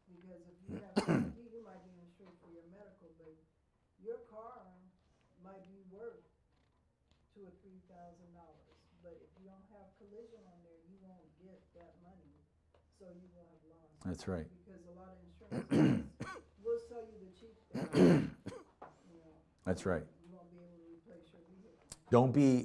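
A middle-aged man speaks calmly into a microphone, reading out.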